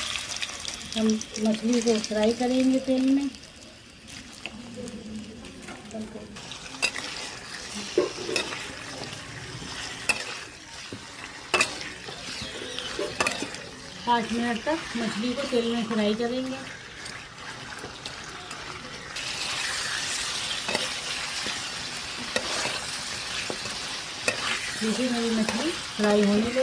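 Food sizzles and crackles in hot oil.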